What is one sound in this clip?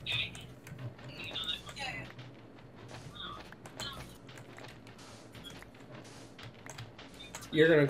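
Sand crunches in short repeated bursts as it is dug.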